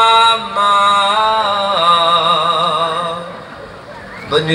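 A band plays loud music through loudspeakers.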